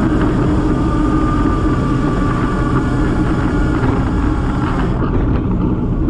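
A motorcycle engine hums nearby.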